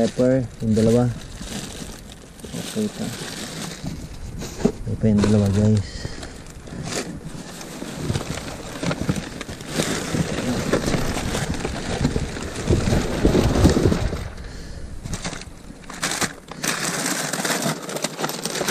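Plastic wrappers crinkle and rustle.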